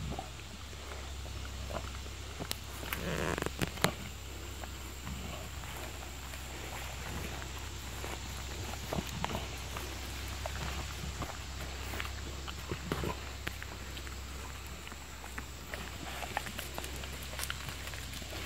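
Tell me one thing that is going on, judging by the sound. Wolves lick and lap at plastic cups on the ground.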